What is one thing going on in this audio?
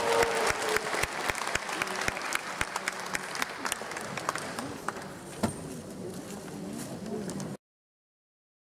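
An audience applauds loudly in a large hall, slowly dying down.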